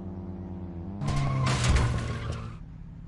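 A car crashes loudly into a barrier.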